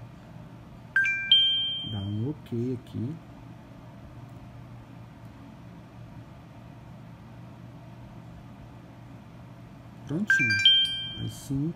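A phone gives a short bright chime.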